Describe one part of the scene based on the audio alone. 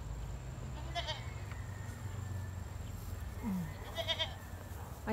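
Young goats bleat softly in the distance.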